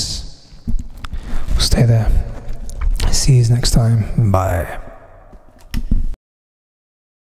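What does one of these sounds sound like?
A man speaks with animation, close into a microphone.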